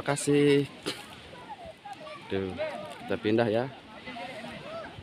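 Several women chat casually close by outdoors.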